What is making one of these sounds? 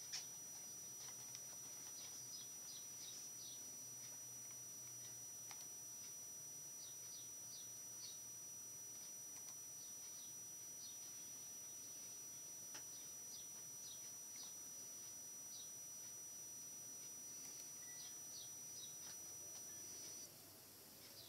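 A computer hums with a steady high whine.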